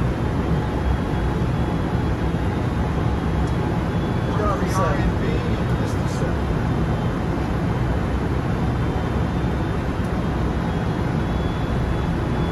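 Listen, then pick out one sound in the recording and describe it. A steady roar of engines and rushing air fills an aircraft cockpit.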